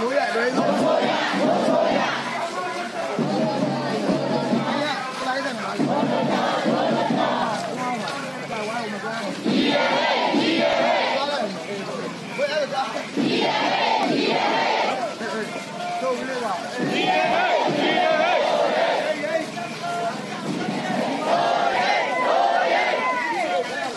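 A crowd of young men and women chants slogans in unison outdoors.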